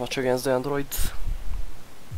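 A young man speaks quietly and calmly.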